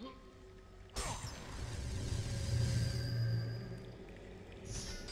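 A magical burst whooshes and hums loudly.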